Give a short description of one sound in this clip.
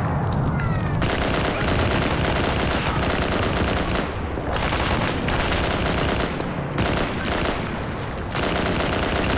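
A rifle fires rapid bursts of loud shots close by.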